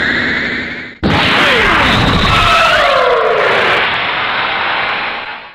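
A loud blast bursts and rumbles.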